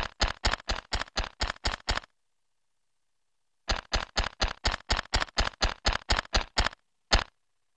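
A horse's hooves gallop rapidly over the ground.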